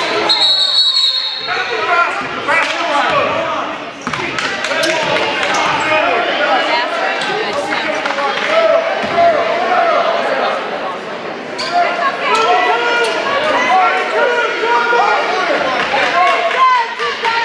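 A crowd cheers and chatters, echoing in a large gym.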